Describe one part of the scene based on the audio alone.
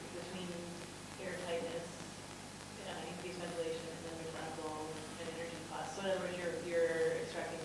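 A man speaks calmly and steadily nearby.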